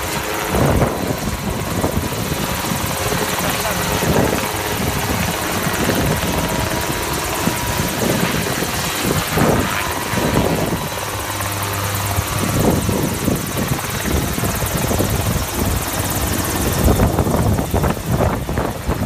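A helicopter's engine and rotor roar close by.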